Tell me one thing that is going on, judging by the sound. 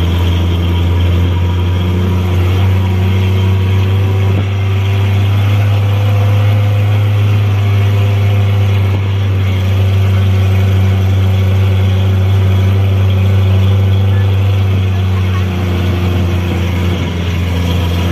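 An open electric tram hums steadily as it rolls along a road.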